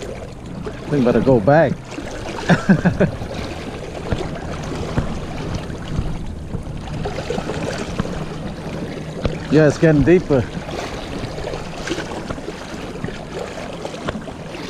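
River water rushes and ripples steadily.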